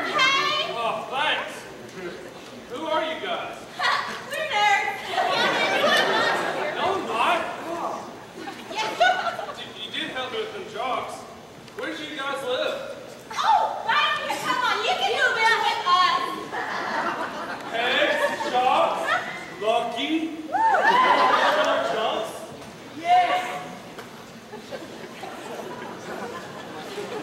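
Young women speak with animation, heard from a distance.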